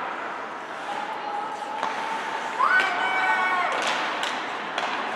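Skates scrape and hiss across ice in an echoing rink.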